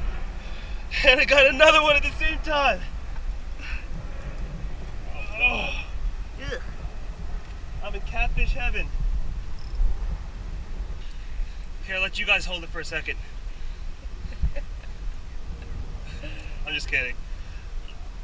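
A man talks excitedly close by.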